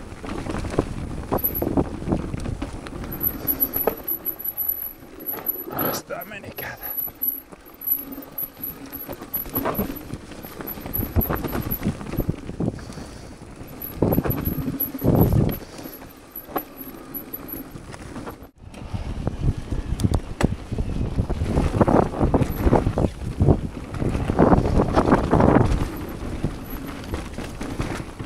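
A bike frame rattles and clunks over bumps.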